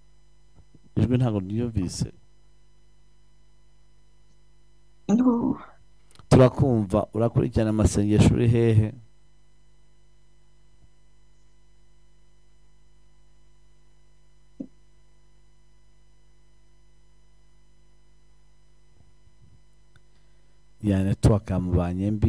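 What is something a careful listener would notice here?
A man speaks through a microphone with animation, in short bursts.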